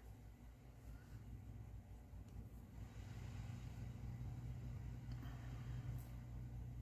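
Fabric rustles softly as hands move it.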